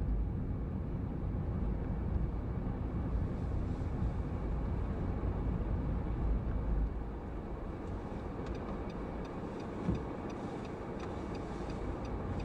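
A car engine hums and tyres rumble on the road from inside a moving car.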